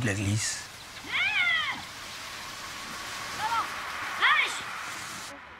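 Sled dogs yelp outdoors.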